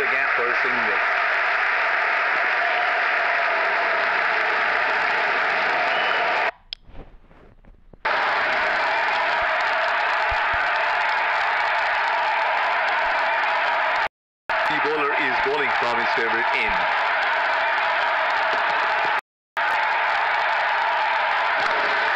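A large crowd cheers steadily in a stadium.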